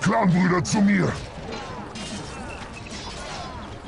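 Weapons clash in a fight.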